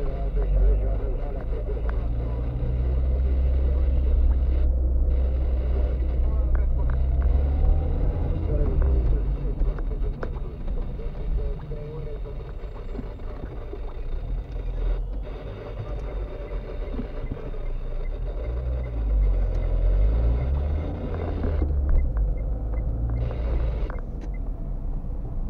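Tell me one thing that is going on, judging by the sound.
A car engine hums steadily from inside the car as it drives along a street.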